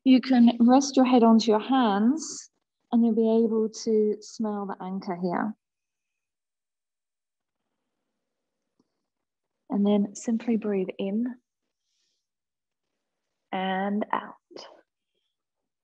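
A woman speaks calmly and slowly, close to a microphone, with long pauses.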